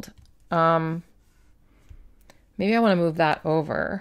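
Fingers brush and tap on a paper page.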